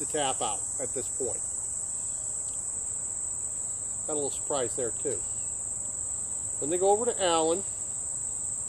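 A man speaks calmly, close by, in short bursts.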